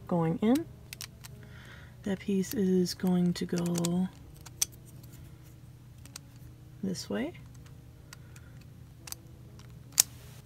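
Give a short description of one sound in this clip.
Hard plastic puzzle pieces click and tap against each other.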